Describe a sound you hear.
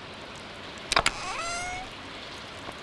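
A wooden chest creaks open with a short rising chime.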